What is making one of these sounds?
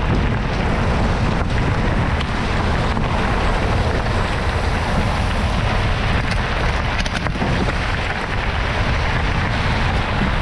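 Wind buffets the microphone with a low rumble.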